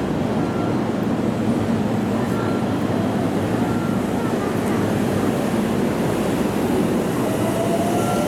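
A train rolls slowly past with a low rumble and a rising motor whine.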